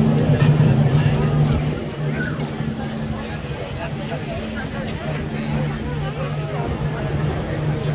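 A crowd of men and women murmurs and chatters nearby outdoors.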